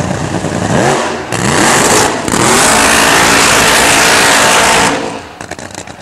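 A drag racing car's engine roars very loudly.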